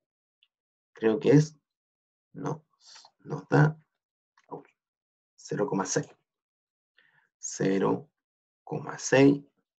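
A man speaks calmly through a microphone, explaining in short phrases.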